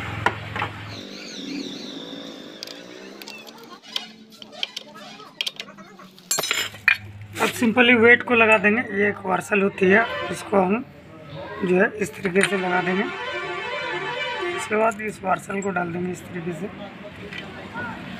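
Metal tools clink and scrape against engine parts.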